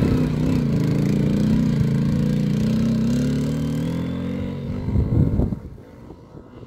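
A quad bike engine revs loudly close by and fades into the distance.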